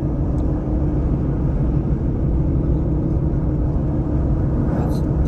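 A car engine hums steadily with road noise from the tyres, heard from inside the car.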